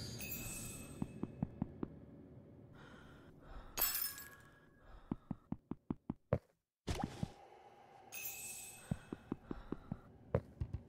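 Small footsteps tap quickly.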